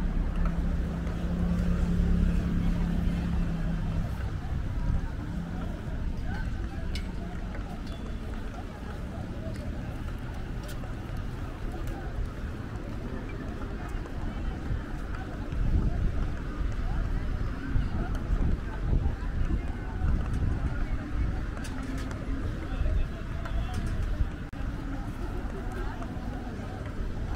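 A crowd of people chatters in the distance.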